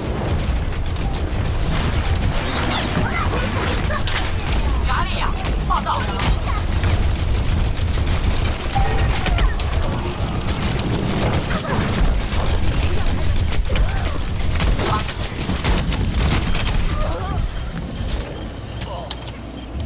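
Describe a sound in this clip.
Gunfire and explosions crackle and boom from a game.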